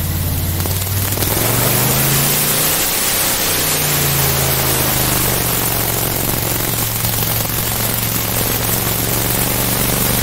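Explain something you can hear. Water rushes and splashes under a boat's hull.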